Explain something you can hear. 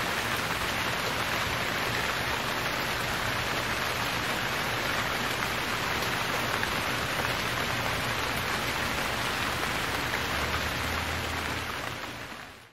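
Steady rain falls on trees and patters on a tent canopy close by.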